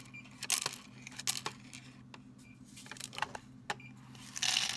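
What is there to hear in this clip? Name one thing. Pills rattle and click inside a plastic counting tray.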